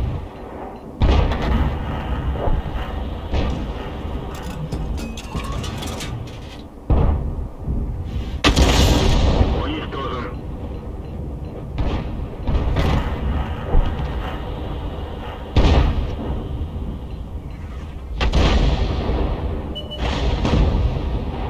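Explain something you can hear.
Heavy guns fire with loud, sudden booms that echo away.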